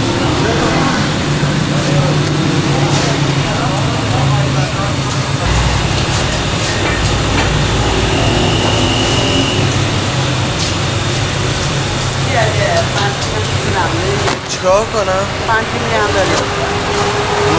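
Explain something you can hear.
Crisp flatbread crackles as hands handle it.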